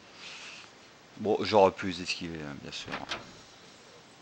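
A heavy wooden door creaks open slowly.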